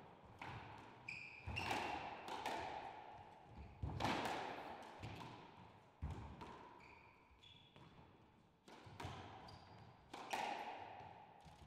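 A squash ball smacks sharply off rackets and walls, echoing around a hard court.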